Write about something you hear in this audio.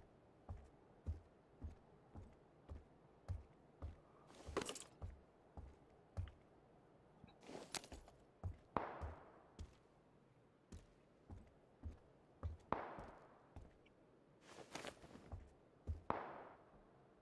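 Footsteps thud softly and steadily on a wooden floor.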